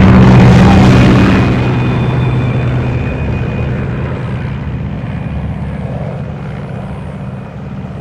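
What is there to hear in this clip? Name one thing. A large propeller aircraft drones loudly overhead.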